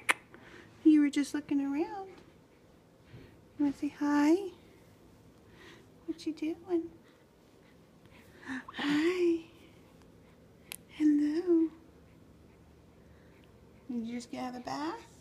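A baby coos softly close by.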